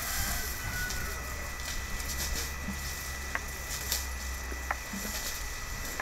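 An elephant rustles and snaps leafy branches with its trunk.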